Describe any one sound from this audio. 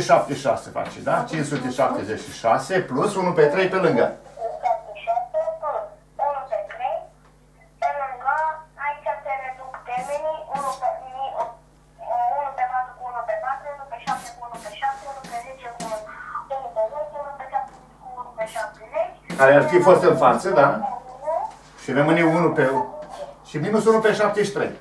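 An elderly man lectures steadily, close by.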